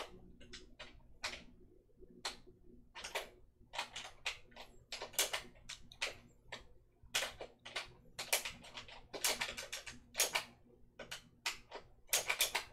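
Sharp video game hit and slash effects crackle in quick bursts.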